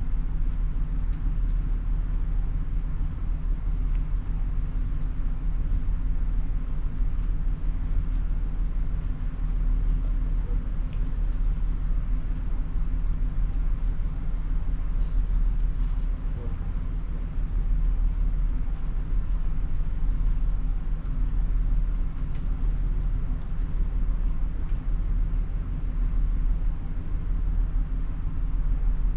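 A ship's engine rumbles low and steadily.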